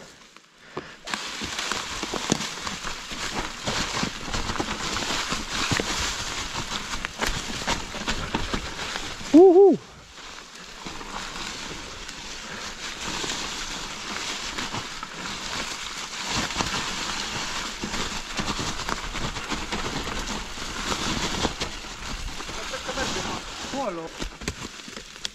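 Bicycle tyres crunch and rustle over dry fallen leaves.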